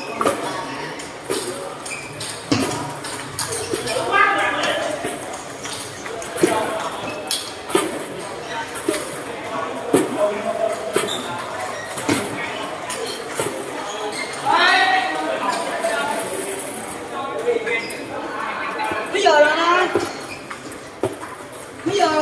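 Table tennis balls click sharply off paddles and tables in a large echoing hall.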